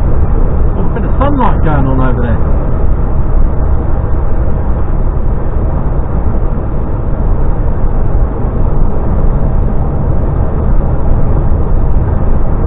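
A truck's engine drones steadily from inside the cab.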